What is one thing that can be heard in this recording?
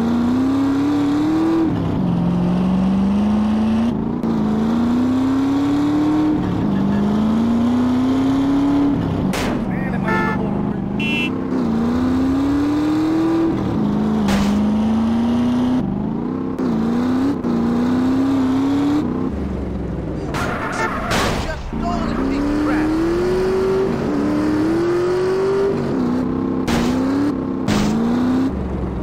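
A motorcycle engine revs hard, rising in pitch through each gear and dropping at every shift.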